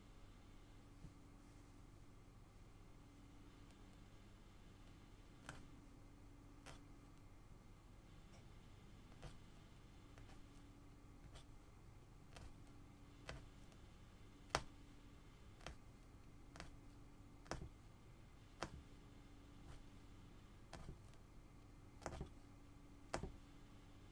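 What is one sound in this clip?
A punch needle taps and pokes through stretched cloth again and again.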